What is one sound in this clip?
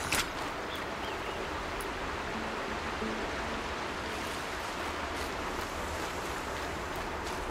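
Footsteps brush through tall grass.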